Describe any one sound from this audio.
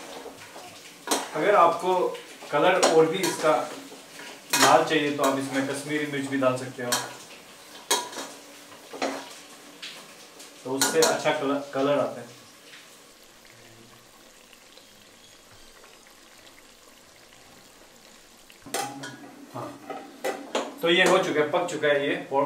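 A young man talks calmly close by.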